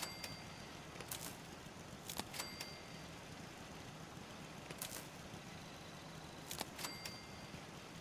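Short menu clicks and beeps sound now and then.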